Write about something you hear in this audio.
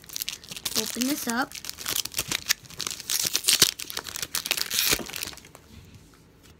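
Plastic wrapping crinkles and rustles as it is torn.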